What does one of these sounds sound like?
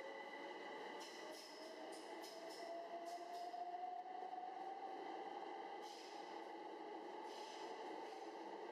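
Train wheels click over rail joints.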